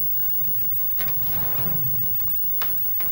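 A woman speaks quietly and urgently, close by.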